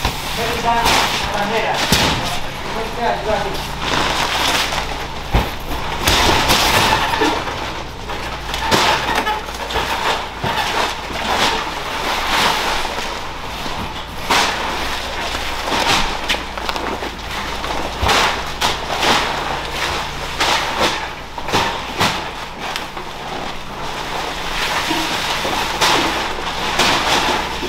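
Heavy sacks thud onto a metal truck bed.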